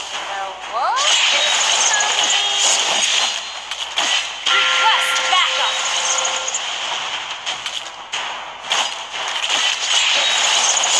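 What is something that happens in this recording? Game sound effects of slashing and magic blasts ring out rapidly.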